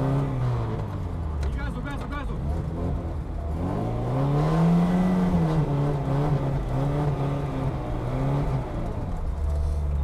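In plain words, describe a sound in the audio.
A car engine revs hard and roars.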